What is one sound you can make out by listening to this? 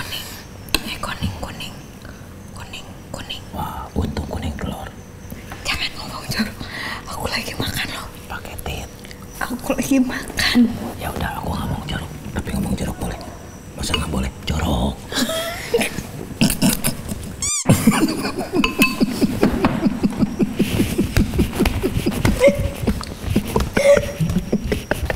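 A young woman talks with animation, close by.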